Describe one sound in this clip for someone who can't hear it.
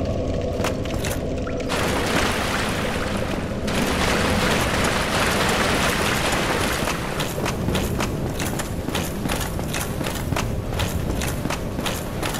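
Armoured footsteps clank on a stone floor.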